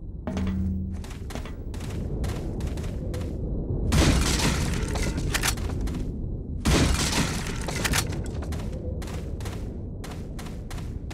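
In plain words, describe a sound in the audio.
Footsteps crunch on gravel at a steady walking pace.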